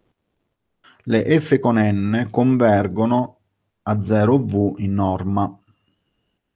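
A man speaks calmly over an online call, in short phrases.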